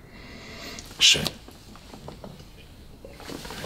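A man sips a drink with a slurp.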